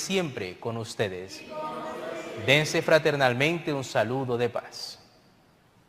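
A man sings a chant through a microphone in a large echoing hall.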